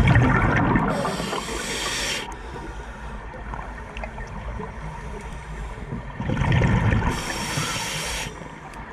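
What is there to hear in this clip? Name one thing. A diver breathes in through a regulator with a hiss.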